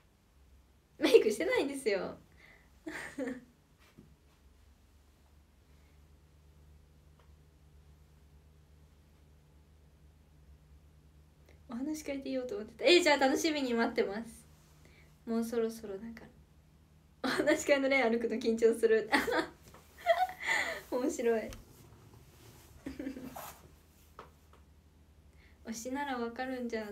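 A young woman speaks cheerfully and close up.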